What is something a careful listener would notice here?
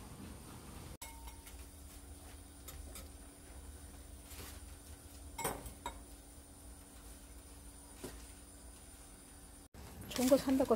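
Water bubbles softly at a boil in a pot.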